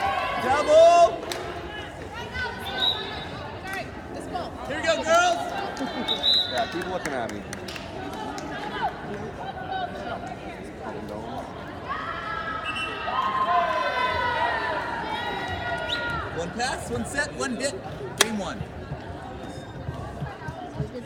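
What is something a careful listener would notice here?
Young women shout and cheer in a large echoing gym.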